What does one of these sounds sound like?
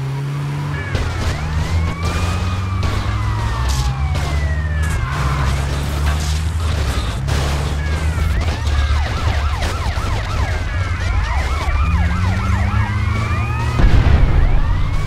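Vehicles crash together with loud metallic thuds.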